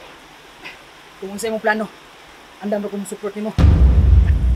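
A young man speaks with animation nearby.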